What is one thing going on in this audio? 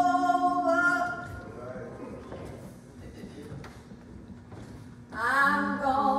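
A man sings slowly through a microphone in a large echoing room.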